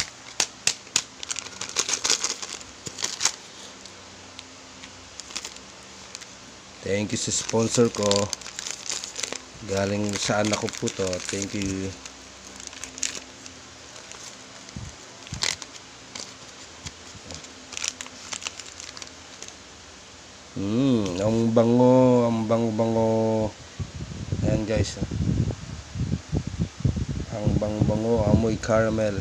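A plastic packet crinkles and rustles in someone's hands.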